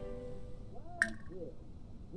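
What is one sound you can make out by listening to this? A short interface click sounds.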